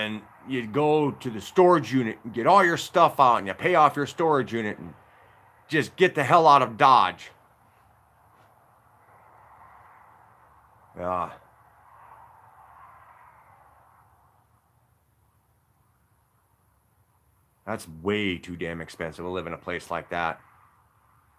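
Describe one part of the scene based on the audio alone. A middle-aged man talks close to the microphone with animation, pausing now and then.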